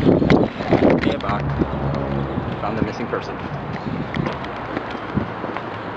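A young man talks close by.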